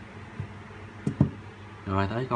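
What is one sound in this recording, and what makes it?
A phone taps down onto a tabletop.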